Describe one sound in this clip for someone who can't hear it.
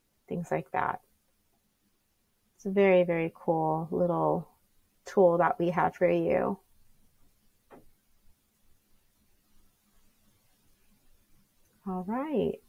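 A young woman speaks calmly and clearly into a close microphone, with pauses.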